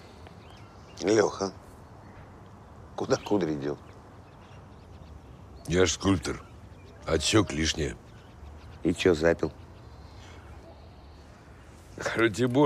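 A middle-aged man speaks calmly nearby in short phrases.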